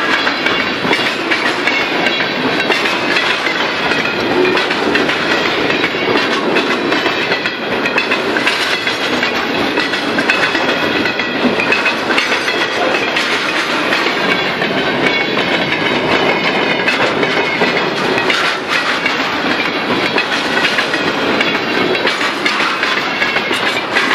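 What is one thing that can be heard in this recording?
Steel wheels squeal and clatter on the rails.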